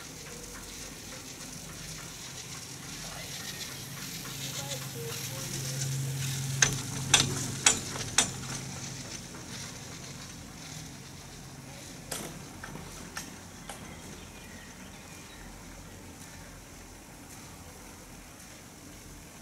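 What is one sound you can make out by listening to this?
A lift cable hums low and steady.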